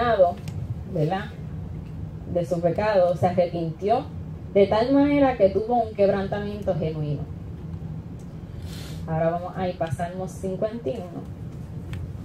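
A young woman speaks calmly through a microphone, reading out.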